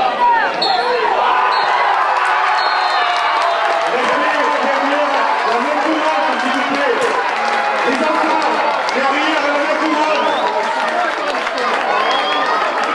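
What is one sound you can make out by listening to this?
A crowd of young men shouts and cheers excitedly outdoors.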